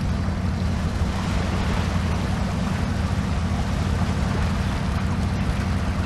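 Water splashes as a truck drives through a stream.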